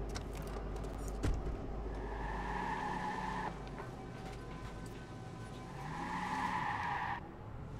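A car engine hums and revs as the car drives off.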